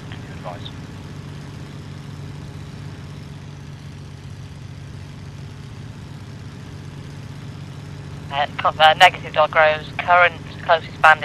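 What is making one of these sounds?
A Spitfire's V12 piston engine drones steadily at cruise, heard from inside the cockpit.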